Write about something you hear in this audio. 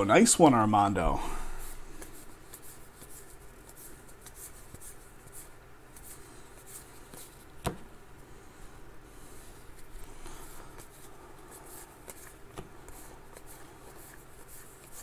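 A foil wrapper crinkles as hands open it.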